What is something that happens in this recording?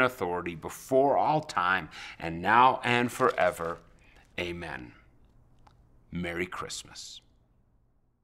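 A middle-aged man speaks calmly and with animation close to a microphone.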